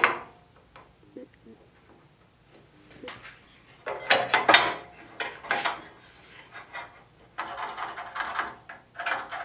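A metal clamp clicks and rattles as it is slid and tightened on a metal rail.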